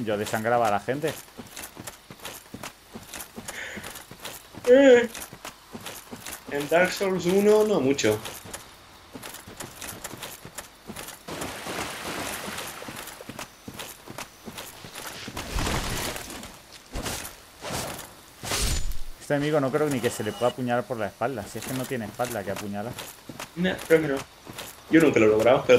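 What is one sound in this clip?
Armoured footsteps crunch on the ground.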